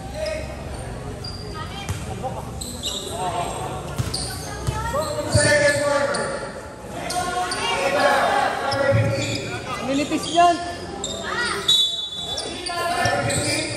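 Young players shout and call out to each other across an echoing court.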